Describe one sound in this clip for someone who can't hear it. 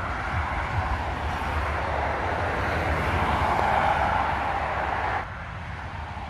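A car drives past on a road.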